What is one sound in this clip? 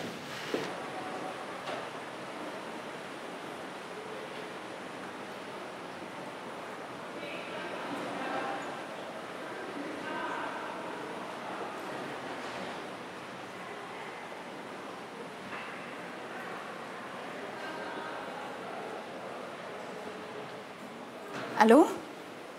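Men and women chatter softly in the background.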